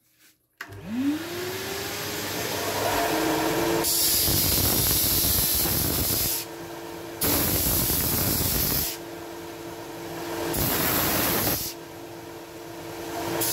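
A sanding machine motor spins up and hums steadily.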